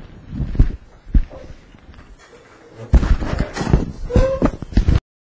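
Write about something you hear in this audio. Hands rustle and thump close to a microphone.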